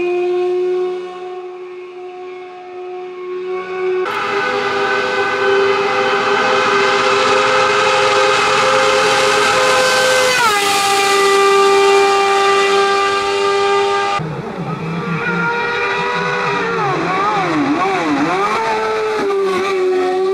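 A racing car's engine whines loudly at high revs as it speeds by.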